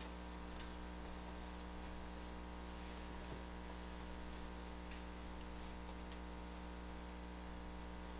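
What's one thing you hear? Hands rub and smooth soft clay on a board.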